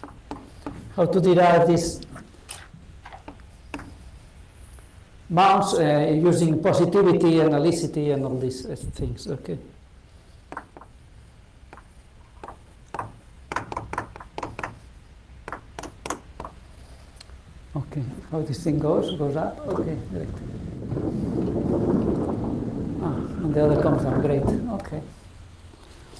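A man lectures calmly in a slightly echoing room.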